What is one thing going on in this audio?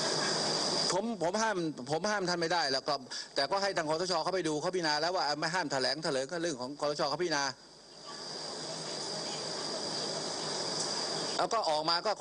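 A middle-aged man speaks firmly into a microphone outdoors.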